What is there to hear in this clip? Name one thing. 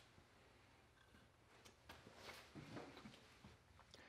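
A mouse scrabbles softly inside a plastic tube.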